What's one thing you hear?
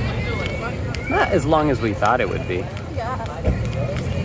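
Several young adults talk and laugh nearby.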